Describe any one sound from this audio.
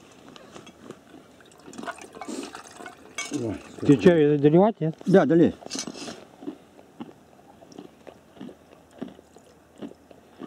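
Tea pours from a kettle into a metal mug.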